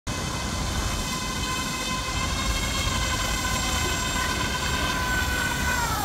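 Wind buffets outdoors by open water.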